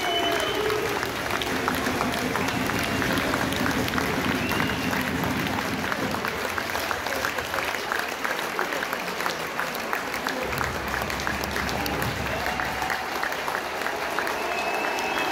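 A nearby crowd claps hands.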